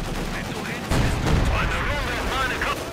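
A second explosion bursts nearby.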